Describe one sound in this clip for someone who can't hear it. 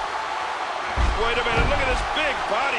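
A body slams heavily onto a wrestling ring mat in a video game.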